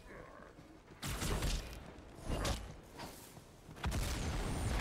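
Energy weapons fire in short, sharp bursts.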